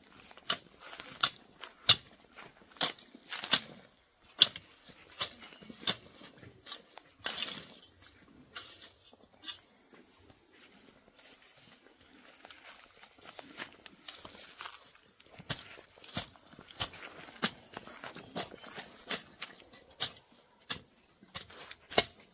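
A hoe chops and scrapes into soil and grass with repeated dull strikes.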